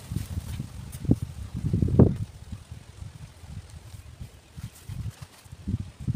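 Grass rustles softly as a snake slides through it.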